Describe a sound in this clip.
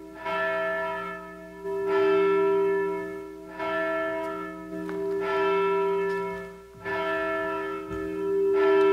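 A bell rings out in slow, repeated strokes, each tone ringing on and fading.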